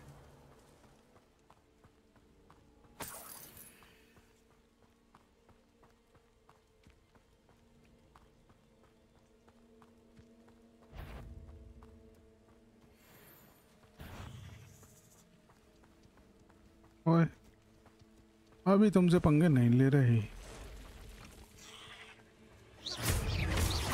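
Footsteps patter quickly on a dirt path.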